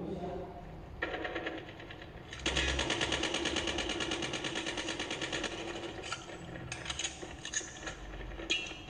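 Automatic gunfire from a shooting game plays through a tablet's small speakers.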